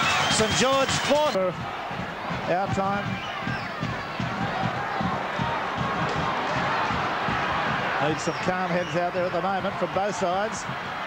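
A large crowd cheers and murmurs outdoors.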